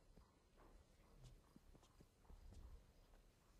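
Paper rustles and crinkles softly close by.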